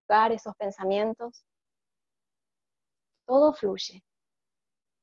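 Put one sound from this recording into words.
A woman speaks calmly and softly, close to a microphone, in short phrases with long pauses.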